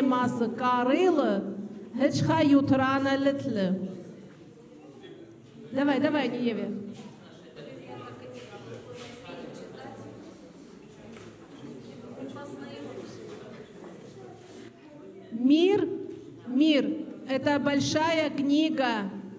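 A child sings loudly through a loudspeaker in an echoing hall.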